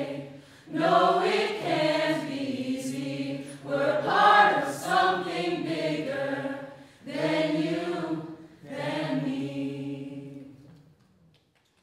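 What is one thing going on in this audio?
A group of young men and women sing together in a large hall.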